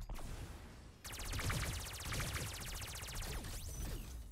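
A machine gun fires in a rapid rattling burst.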